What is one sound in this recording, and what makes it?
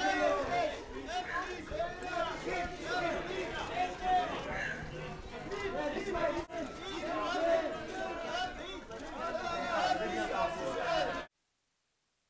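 A crowd of men and women chatter loudly nearby.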